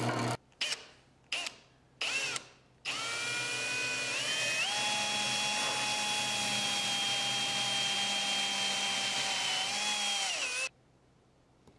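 A cordless drill whirs in short bursts, then runs steadily as it bores into wood.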